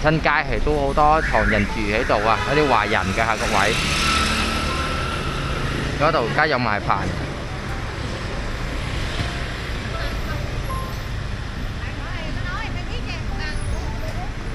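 Motorbike engines hum and pass by on a busy street.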